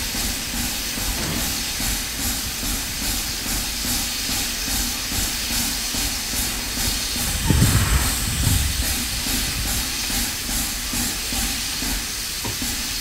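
A steam locomotive chuffs with steady, rhythmic puffs close by.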